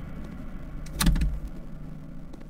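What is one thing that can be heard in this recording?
A door handle rattles against a jammed door.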